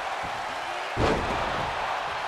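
A body slams hard onto the mat with a heavy thud.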